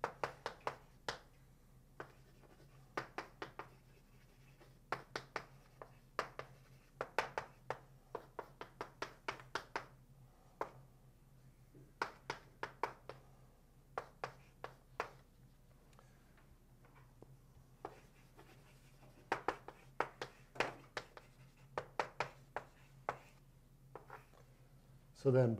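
Chalk taps and scrapes on a blackboard in quick bursts.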